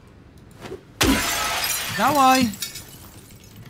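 Window glass shatters.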